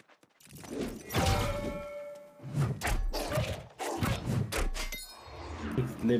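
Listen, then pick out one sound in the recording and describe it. Heavy axe blows land with loud, crunching thuds.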